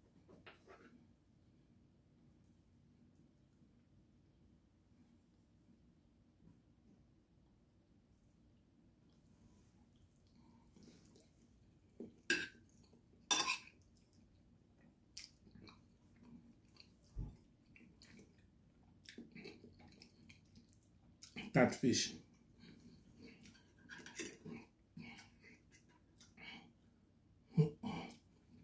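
Cutlery clinks and scrapes against a plate.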